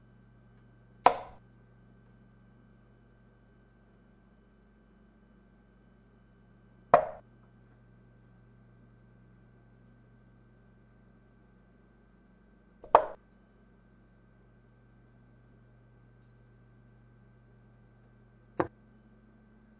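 A chess piece clacks down onto a wooden board, four times with long pauses.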